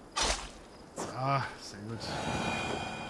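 A wild boar squeals and grunts.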